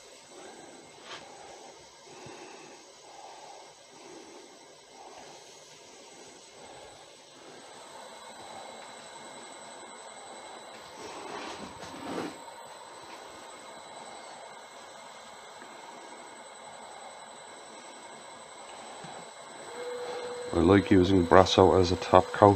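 A paper towel rubs softly against a spinning rod.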